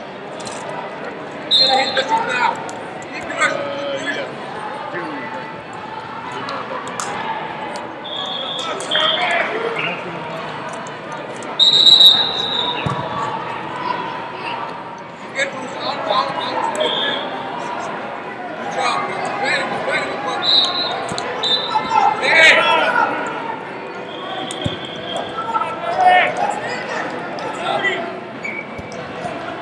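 A crowd murmurs throughout a large echoing hall.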